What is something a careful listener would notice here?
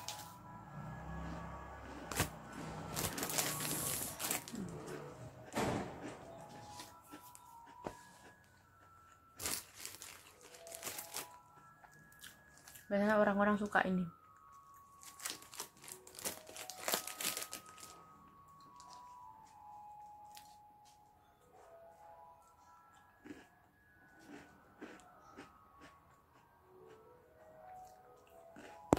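A young woman bites and crunches a crisp snack close by.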